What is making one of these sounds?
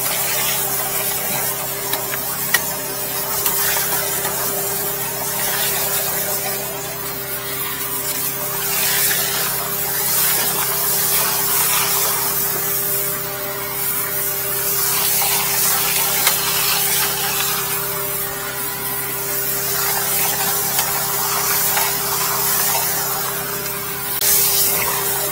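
A pressure washer pump hums steadily.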